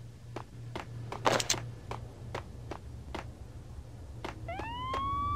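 Footsteps run on a tiled floor.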